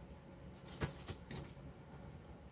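Paper rustles as hands move it.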